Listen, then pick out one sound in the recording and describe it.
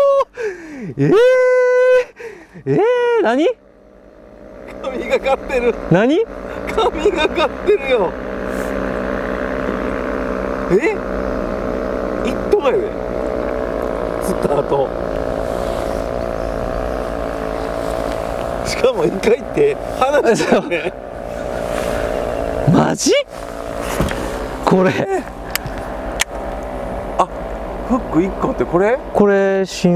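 A young man talks and laughs excitedly, close to a microphone.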